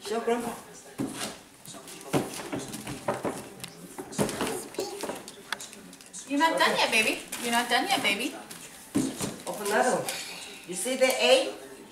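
Wrapping paper rustles and crinkles as presents are unwrapped.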